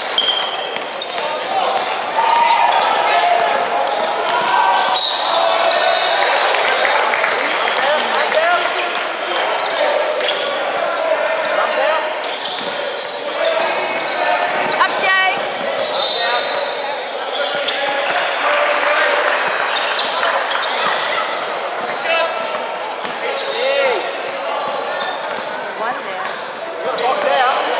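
A crowd of spectators chatters and shouts in a large echoing gym.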